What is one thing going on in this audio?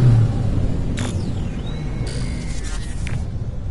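A soft electronic chime sounds.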